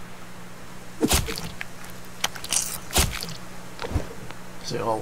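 An axe chops into a carcass with wet thuds.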